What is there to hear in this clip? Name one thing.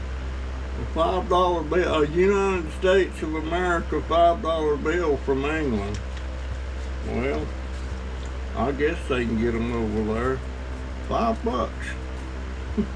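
An elderly man talks calmly, close by.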